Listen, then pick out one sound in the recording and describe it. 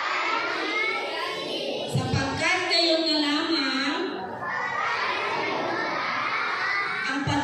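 Children chatter quietly nearby.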